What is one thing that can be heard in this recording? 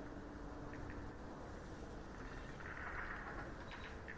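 Balls click together on a table.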